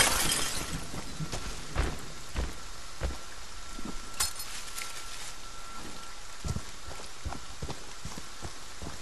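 Heavy footsteps thud slowly on soft ground.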